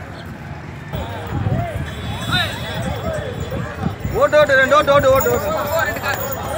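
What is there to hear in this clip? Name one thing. A crowd of men talks and calls out outdoors.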